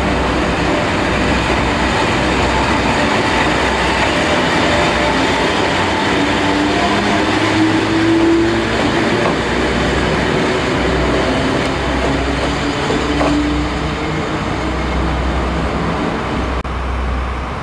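A locomotive rumbles slowly past close by.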